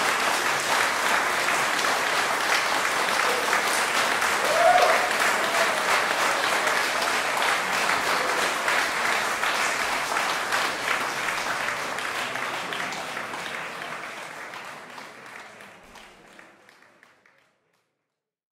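An audience applauds in an echoing hall, then fades away.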